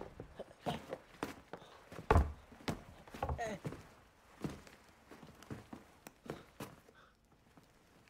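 Kicks thud against a body.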